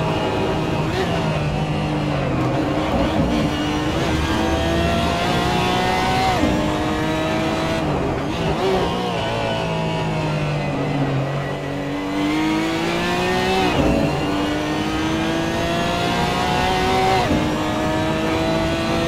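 A racing car engine roars, rising in pitch and dropping sharply at each gear change.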